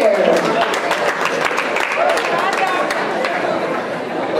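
An audience cheers and claps.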